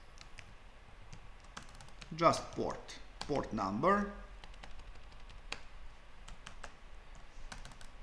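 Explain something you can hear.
Keys on a keyboard click in quick, uneven taps.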